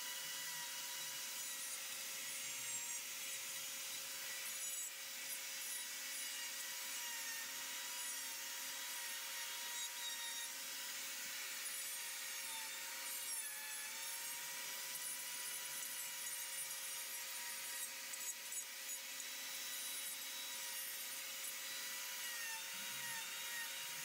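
A rotary carving tool whines steadily as it grinds into wood.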